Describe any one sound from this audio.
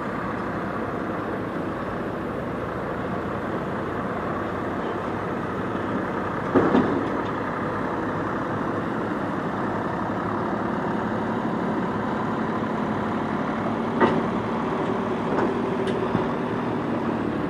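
A tractor engine rumbles steadily nearby and passes close by.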